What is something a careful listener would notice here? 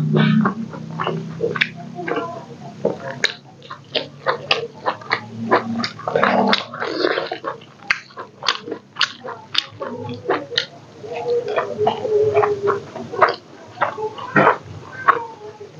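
Fingers squish and mix wet rice close to a microphone.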